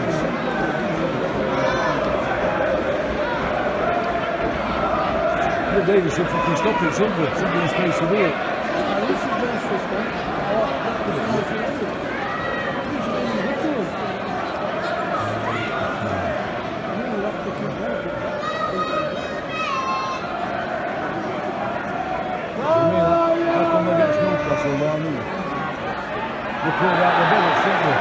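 A large stadium crowd murmurs and chatters steadily.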